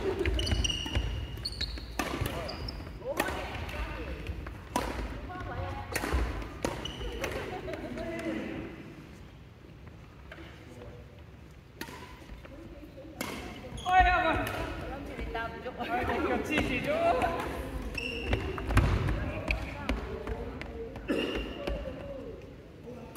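Adult men and women talk and call out across the hall.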